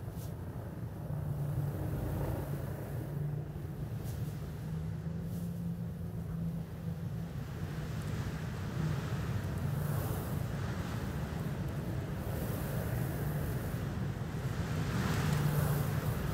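A small aircraft's jet engines hum steadily as it hovers and flies low.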